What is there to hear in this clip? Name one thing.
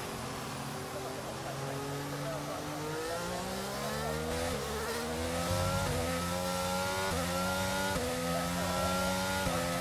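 A racing car engine revs up, shifting gears with quick drops in pitch.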